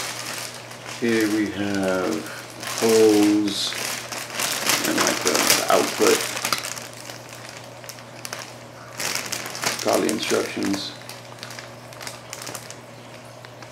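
Plastic wrapping crinkles and rustles as hands handle it.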